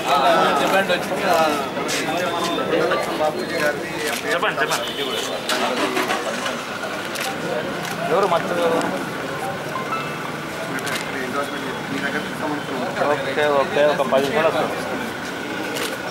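Papers rustle in hands.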